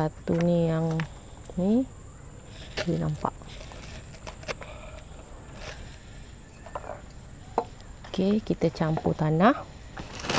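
A woman speaks calmly and close to a clip-on microphone, in short bursts.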